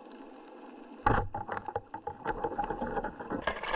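A speargun fires underwater with a sharp thud.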